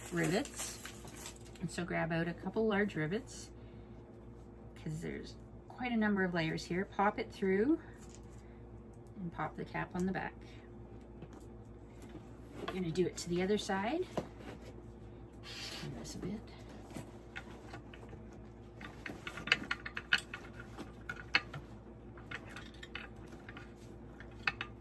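Leather straps rustle and flap as they are handled.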